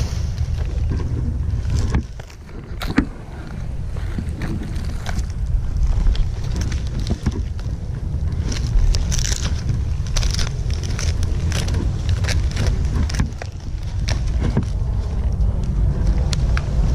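Dry palm fronds rustle and crackle.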